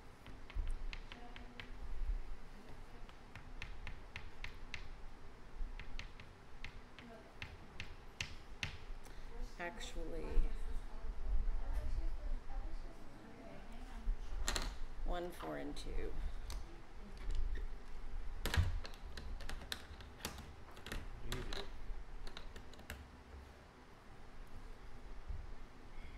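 Cards and game chips tap and click softly on a wooden table.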